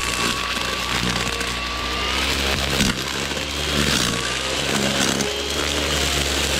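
A string trimmer engine whines loudly and steadily close by.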